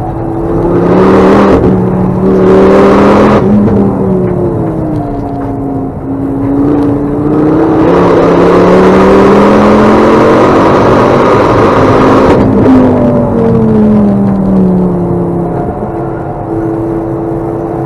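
Tyres rumble over the track.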